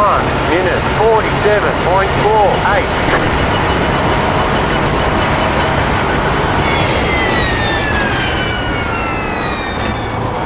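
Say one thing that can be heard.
A race car engine roars loudly at high revs.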